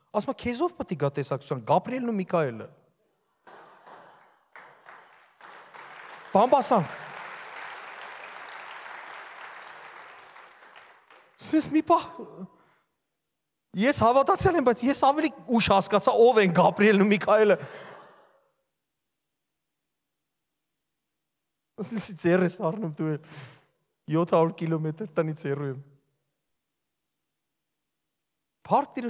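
A young man speaks with animation through a microphone in a large echoing hall.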